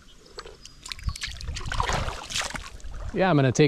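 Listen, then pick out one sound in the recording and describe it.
Water splashes as a fish is let go.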